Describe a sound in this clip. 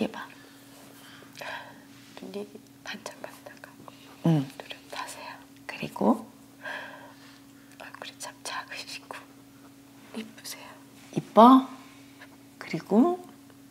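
A young woman speaks gently, close to a microphone.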